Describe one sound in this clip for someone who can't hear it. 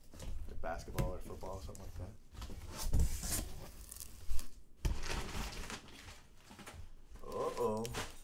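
Packing paper rustles and crinkles.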